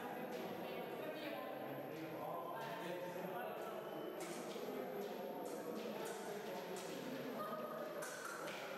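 Fencers' feet stamp and shuffle on the floor of an echoing hall.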